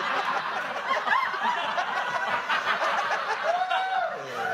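A studio audience laughs loudly.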